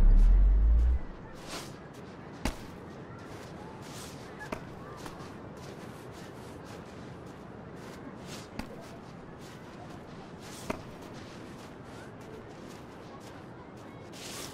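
Footsteps crunch slowly through snow.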